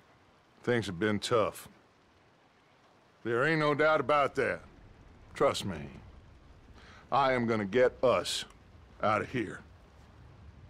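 A man speaks in a low, gravelly voice, calmly and close by.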